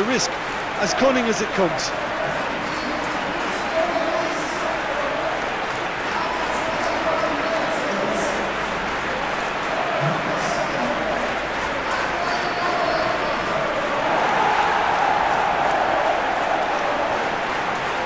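A large stadium crowd roars steadily and swells louder.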